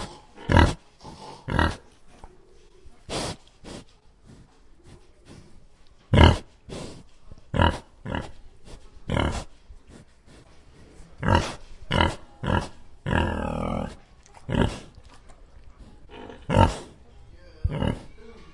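Pigs root and rustle through straw.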